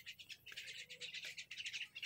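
A parrot squawks nearby.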